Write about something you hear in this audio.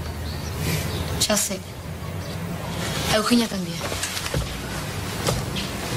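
A young woman speaks.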